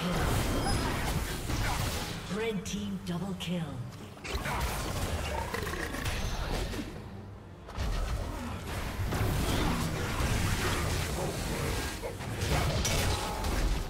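Fantasy battle sound effects clash, whoosh and crackle.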